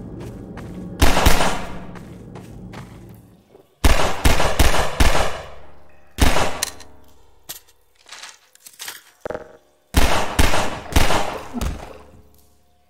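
A pistol fires loud shots that echo off stone walls.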